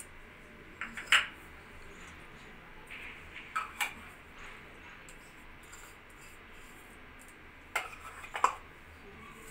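A ceramic bowl taps on the rim of a steel bowl.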